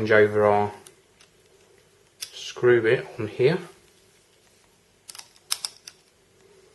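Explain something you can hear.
A screwdriver clicks and scrapes against small screws.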